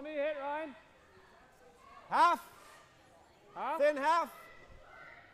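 Men shout loud, drawn-out calls in a large echoing hall.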